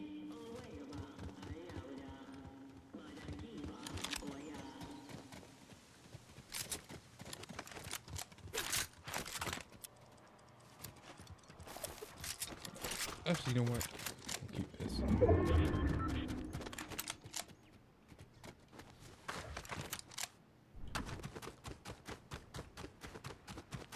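Quick footsteps patter on wood, stone and grass.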